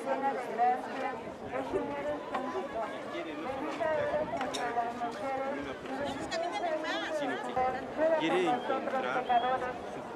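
A crowd of men and women sings together outdoors.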